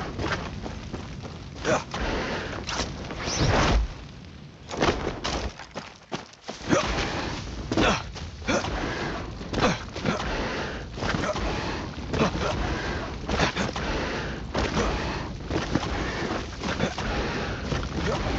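Footsteps run over grass and a dirt path.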